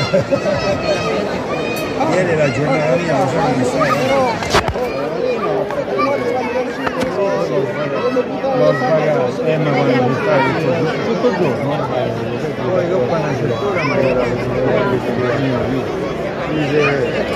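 A crowd of men and women chatter outdoors close by.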